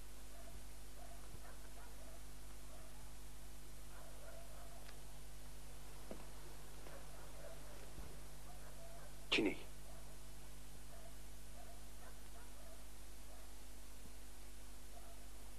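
A man speaks quietly in a low voice.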